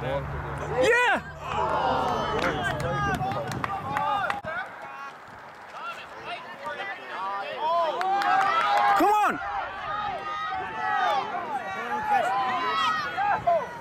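A crowd of spectators cheers and shouts outdoors nearby.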